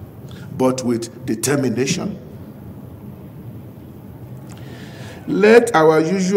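An elderly man speaks slowly and deliberately into a microphone, heard through a loudspeaker.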